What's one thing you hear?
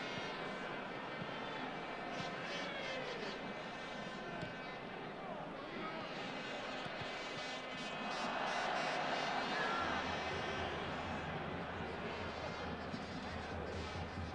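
A large stadium crowd roars and murmurs steadily outdoors.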